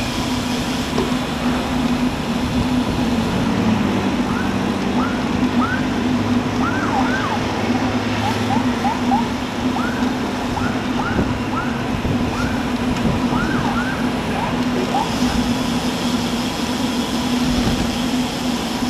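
Wind buffets a microphone steadily.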